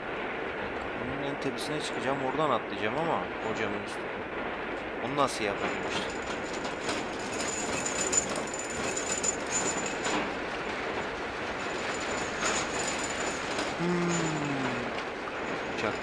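A young man speaks casually into a nearby microphone.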